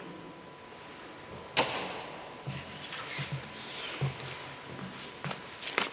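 Footsteps tap on a hard floor in an echoing room.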